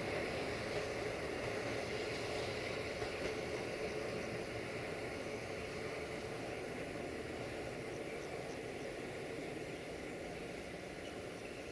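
A train rumbles along the track, moving away and slowly fading.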